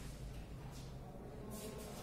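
A marker squeaks softly on a whiteboard.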